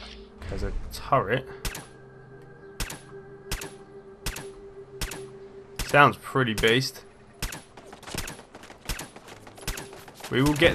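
A silenced pistol fires a quick series of muffled shots.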